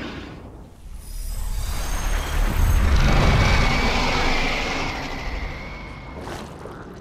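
A deep magical burst swells with a rumble and slowly fades.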